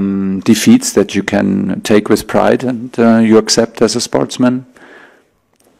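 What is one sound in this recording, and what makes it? A middle-aged man speaks calmly and firmly into a microphone.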